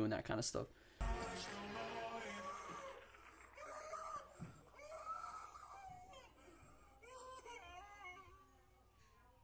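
A woman sings in a soft, strained voice.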